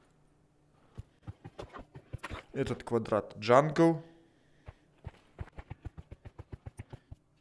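Footsteps tread quickly on hard ground.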